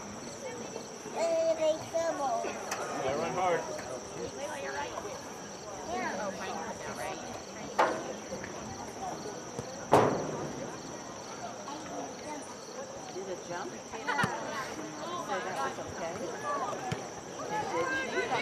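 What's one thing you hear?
Young women call out and shout to each other outdoors.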